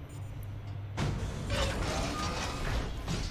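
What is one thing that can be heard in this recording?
A heavy metal door slides open with a loud hiss.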